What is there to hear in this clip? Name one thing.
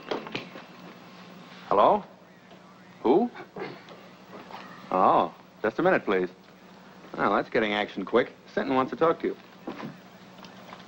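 A young man speaks calmly into a telephone, close by.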